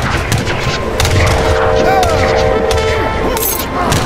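A steam train's whistle blows.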